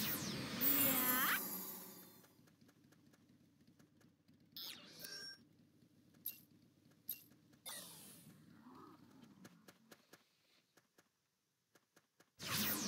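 Magic spells whoosh and chime in bursts during a fight.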